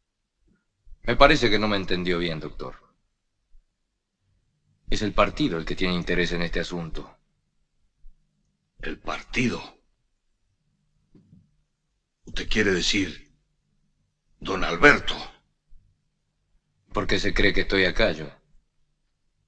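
A middle-aged man speaks in a low, calm voice, close by.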